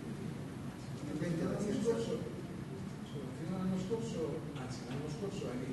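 A middle-aged man speaks calmly into a nearby microphone.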